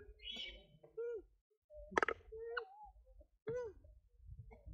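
A small monkey squeaks in short high cries.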